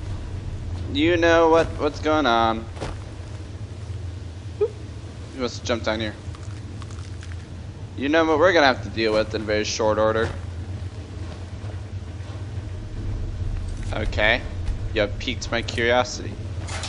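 A young man talks casually into a headset microphone, close up.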